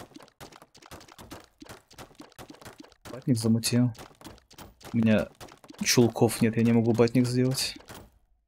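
Quick wet popping sounds come as a game figure fires shot after shot.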